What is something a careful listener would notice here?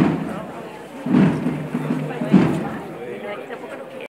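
A crowd murmurs quietly nearby.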